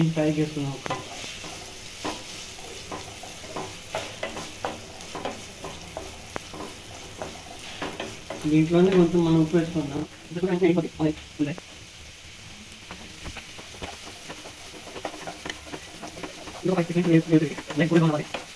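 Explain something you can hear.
Onions sizzle softly in a hot pan.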